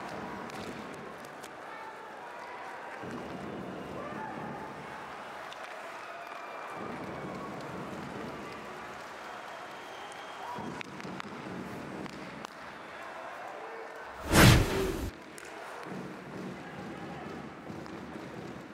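Ice hockey skates scrape and carve across the ice.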